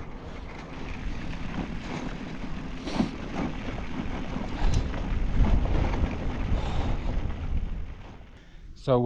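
Bicycle tyres crunch and rattle over a gravel road.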